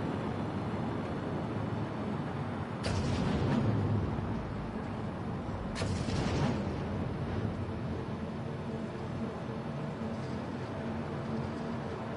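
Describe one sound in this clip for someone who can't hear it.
Spaceship engines hum and rumble steadily.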